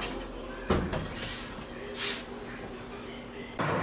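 An oven door clunks open.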